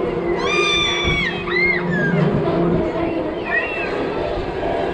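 Young riders scream shrilly with excitement.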